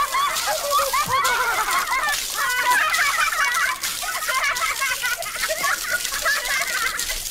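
A water fountain splashes steadily onto pavement.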